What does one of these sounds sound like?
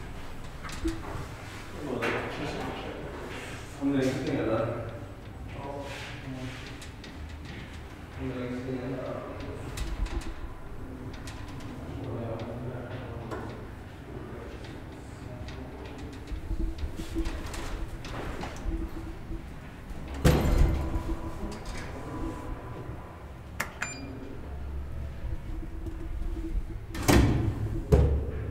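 An elevator motor hums and rumbles steadily as the car moves.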